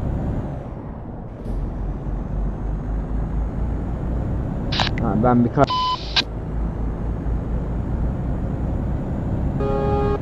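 A truck engine hums steadily as the truck drives along a road.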